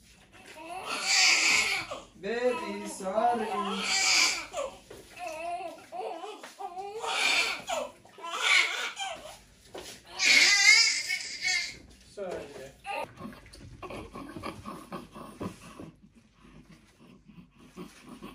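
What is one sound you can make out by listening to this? A newborn baby cries loudly in short, wailing bursts.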